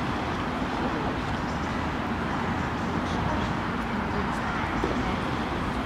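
A middle-aged woman talks with a small group outdoors.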